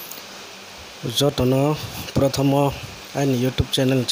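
A man speaks calmly and close into a handheld microphone.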